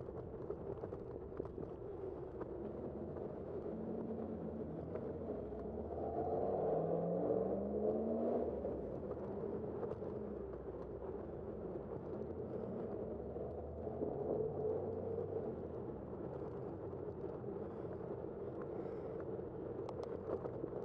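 Wind rushes steadily past a moving rider.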